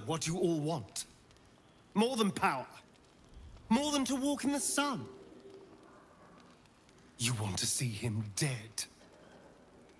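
A man speaks in a low, calm, close voice, in short phrases with pauses.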